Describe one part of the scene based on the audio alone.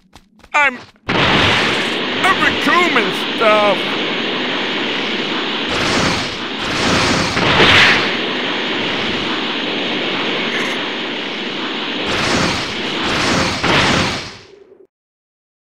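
A rushing energy aura roars as a game character flies at speed.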